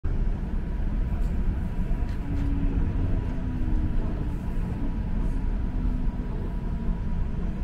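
A streetcar rumbles steadily along its tracks.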